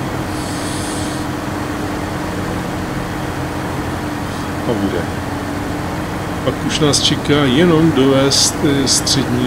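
A heavy truck engine rumbles steadily as the truck drives slowly.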